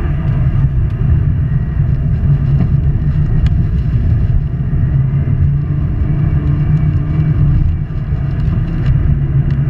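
A turbocharged flat-four rally car engine roars at full throttle, heard from inside the cabin.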